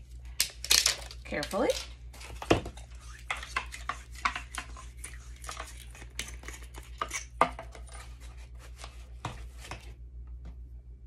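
Plastic parts click and rattle as a flashlight is handled and fitted together.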